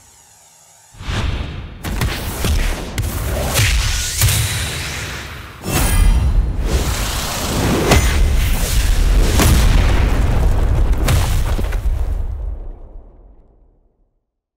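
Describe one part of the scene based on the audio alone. A ball rushes through the air with a loud, swelling roar that fades away.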